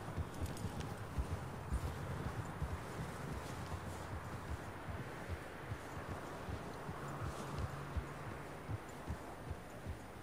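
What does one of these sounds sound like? A horse gallops steadily, its hooves thudding through snow.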